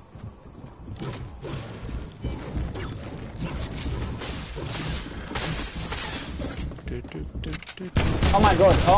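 A pickaxe strikes and breaks things.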